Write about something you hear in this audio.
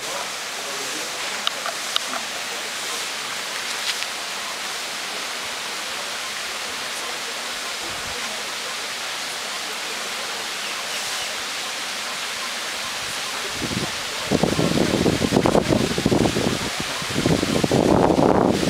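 A crowd of children chatters in the distance outdoors.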